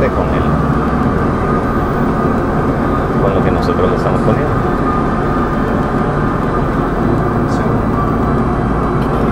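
A steady, loud rumble of aircraft engines fills a cockpit.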